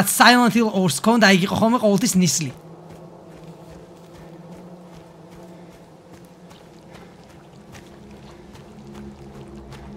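Footsteps crunch softly on leaves and dirt.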